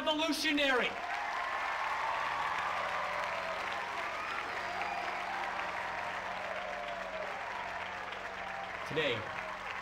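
A crowd cheers and whoops through a television loudspeaker.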